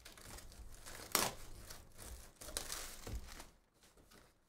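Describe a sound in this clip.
A cardboard box rustles and scrapes as hands open it.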